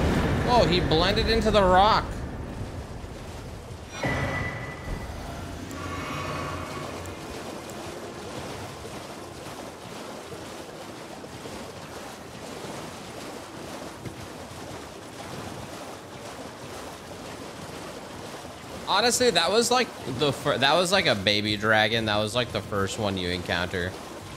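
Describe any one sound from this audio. A horse gallops, splashing through shallow water.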